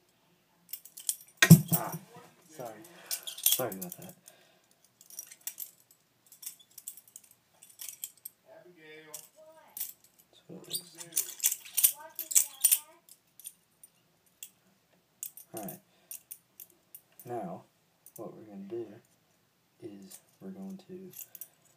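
A butterfly knife clicks and clatters as it is flipped open and shut.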